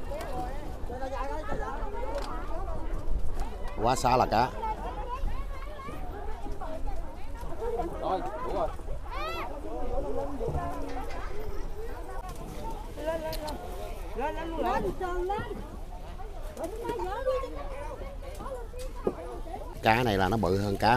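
Several men and women talk with one another outdoors.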